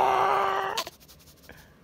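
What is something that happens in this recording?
A baby squeals loudly close by.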